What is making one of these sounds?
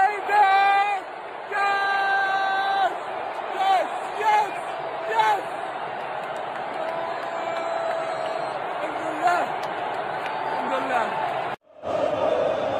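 A young man sings loudly and cheerfully close by.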